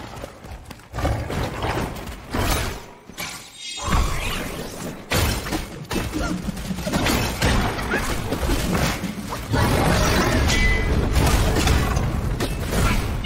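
A huge beast roars and stomps.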